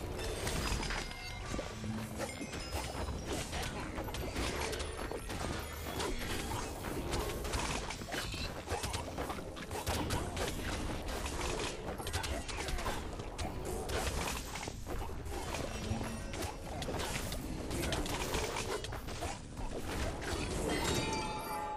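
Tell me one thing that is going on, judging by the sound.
Game explosions boom rapidly.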